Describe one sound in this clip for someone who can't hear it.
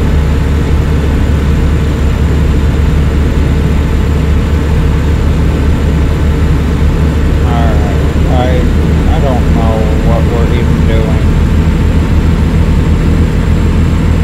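A truck engine hums steadily with road rumble.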